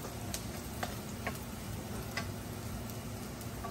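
A metal spatula scrapes and taps against a wok.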